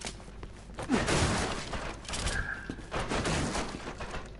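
Wooden crates smash and break apart.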